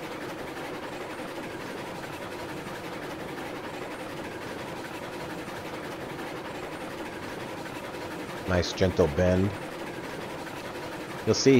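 Train wheels rumble and clack over rails.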